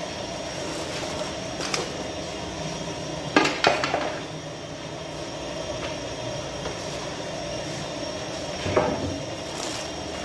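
A wooden peel knocks and scrapes against an oven's opening.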